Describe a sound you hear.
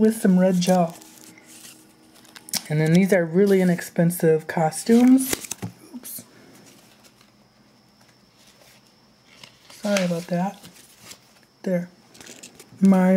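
Pages of a book rustle as it is handled.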